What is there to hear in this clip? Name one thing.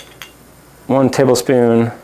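Oil pours from a bottle into a metal pan.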